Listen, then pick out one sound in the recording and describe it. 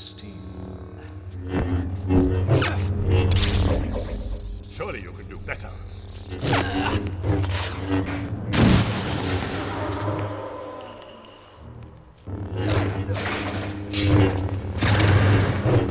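Energy blades clash with sharp crackling bursts.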